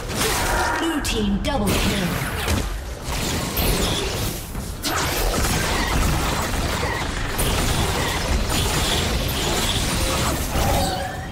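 Magic blasts crackle and whoosh in a fast video game battle.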